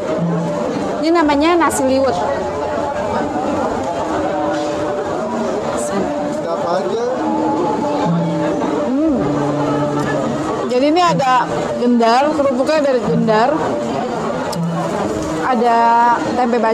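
A middle-aged woman speaks close to a microphone with animation.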